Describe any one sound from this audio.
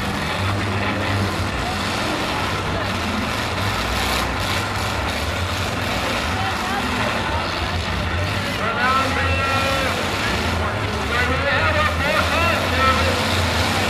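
Car engines rumble and rev in an outdoor arena.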